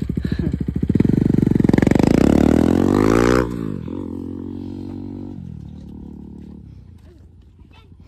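A motorcycle engine roars loudly nearby and then fades away.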